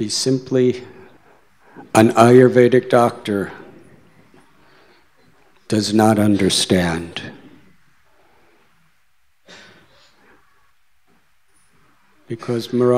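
A man speaks calmly through a microphone, with pauses, in a room with some echo.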